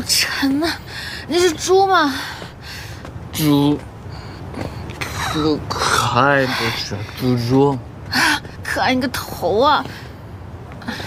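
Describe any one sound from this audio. A young man speaks playfully close by.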